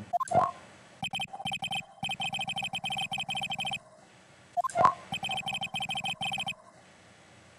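Quick electronic blips chirp rapidly in a steady run.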